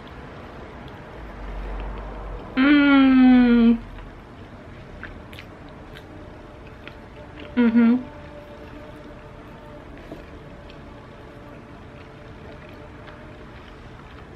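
A young woman chews food with her mouth closed.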